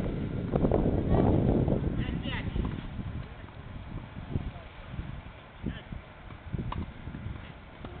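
A tennis ball bounces on a clay court.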